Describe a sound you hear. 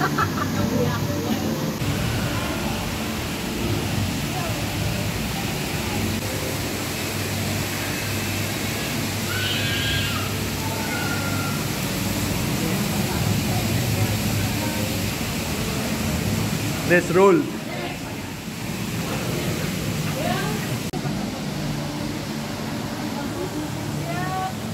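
Several people chatter in the background.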